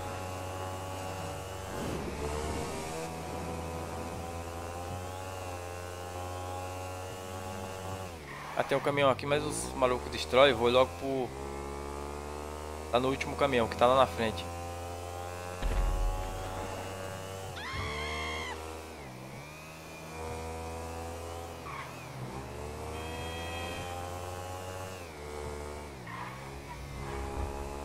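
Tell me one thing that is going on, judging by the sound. A motorcycle engine drones steadily, its pitch rising and falling with the throttle.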